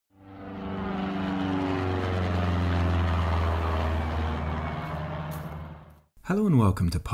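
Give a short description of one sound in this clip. A small propeller plane drones overhead, its pitch dropping as it passes and fades.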